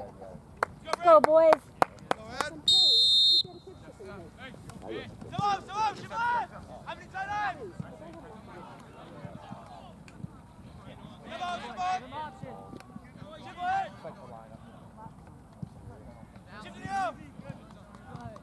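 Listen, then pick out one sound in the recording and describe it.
Young men shout to each other across an open field at a distance.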